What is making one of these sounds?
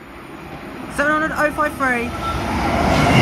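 An electric train sounds a two-tone horn as it approaches.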